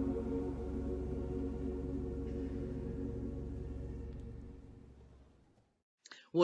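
An organ holds a chord in a reverberant hall, then fades out.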